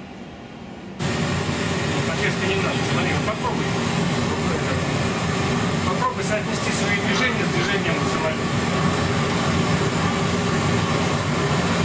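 A jet airliner's engines roar steadily, heard from inside the cockpit.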